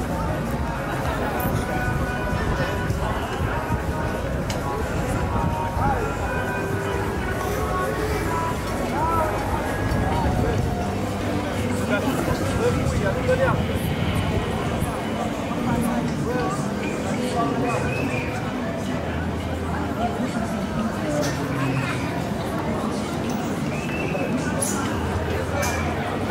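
A crowd murmurs and chatters in the distance outdoors.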